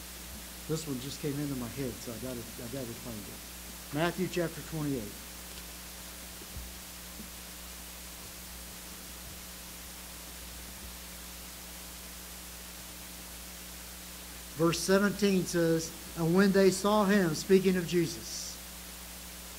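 An elderly man speaks slowly and earnestly into a microphone.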